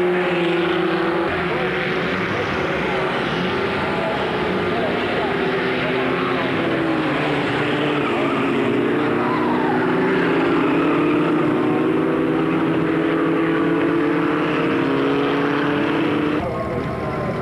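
Racing car engines roar and whine as the cars speed past.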